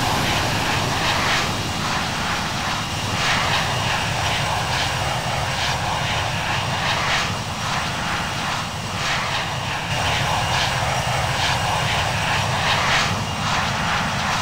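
Jet engines roar steadily as an airliner climbs.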